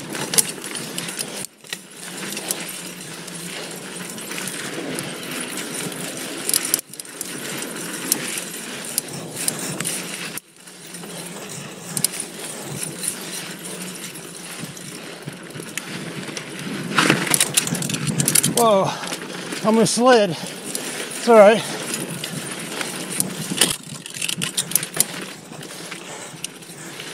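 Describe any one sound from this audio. Bicycle tyres crunch and rattle over a dry dirt trail.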